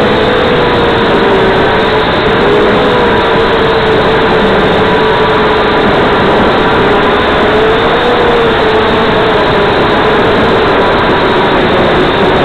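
A small drone's propellers whine loudly and steadily, wavering slightly in pitch.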